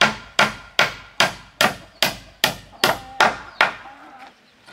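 A hammer strikes a nail into wood in quick, steady blows.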